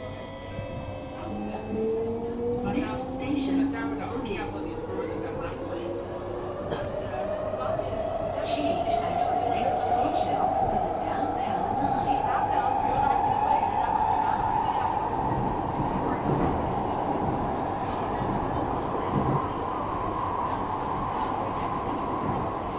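A subway train's motor whines, rising steadily in pitch as the train speeds up.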